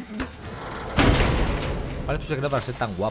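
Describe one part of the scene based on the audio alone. A heavy chest bursts open with a rushing whoosh.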